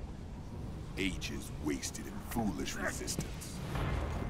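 A man groans and grunts in pain.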